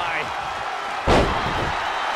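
A body slams heavily onto a ring mat.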